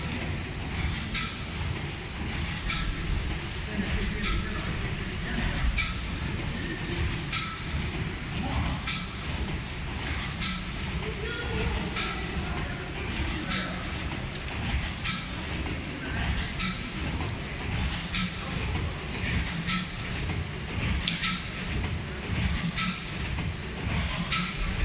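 A packaging machine runs with a steady hum.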